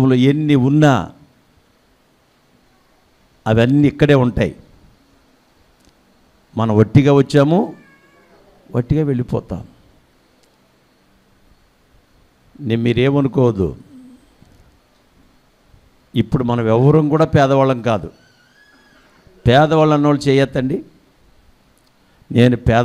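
A middle-aged man preaches forcefully into a microphone in short bursts, with pauses between.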